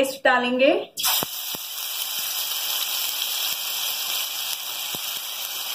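A paste sizzles in hot oil in a frying pan.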